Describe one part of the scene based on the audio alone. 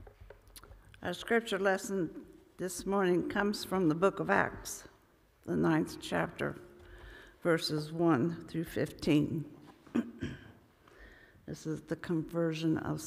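An older woman reads aloud calmly through a microphone in a reverberant hall.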